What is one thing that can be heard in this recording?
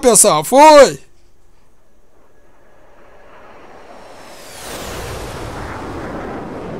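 A jet engine roars steadily and grows louder.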